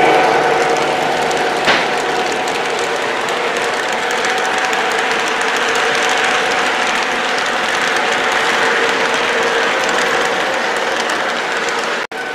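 A model locomotive motor hums steadily.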